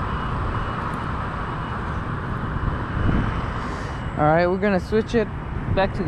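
Wind blusters steadily outdoors.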